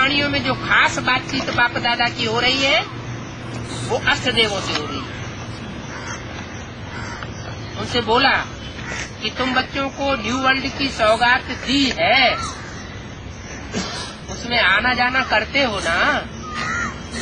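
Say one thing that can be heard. An elderly man speaks calmly and closely, in short bursts with pauses.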